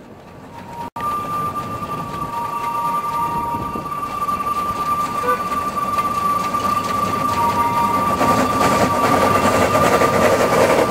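A small steam locomotive chuffs as it approaches, growing louder.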